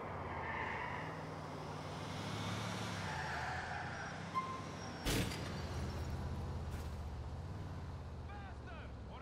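A car engine rumbles as a car drives along.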